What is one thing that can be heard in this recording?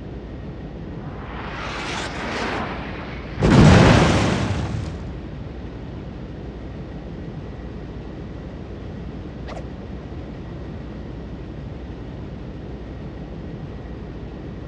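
Water rushes steadily along a ship's hull.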